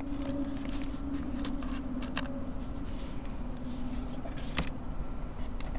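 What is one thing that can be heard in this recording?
A plastic lid scrapes and clicks as it slides off a case.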